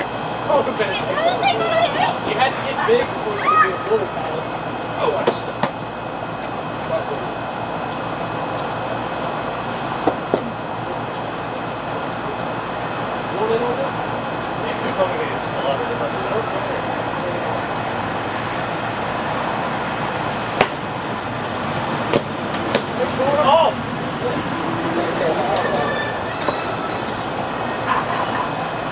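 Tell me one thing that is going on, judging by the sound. Young men talk and shout outdoors at a distance.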